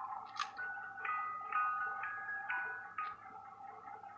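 A music box plays a soft tinkling tune.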